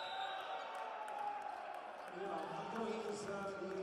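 Young men shout and cheer together in a large echoing hall.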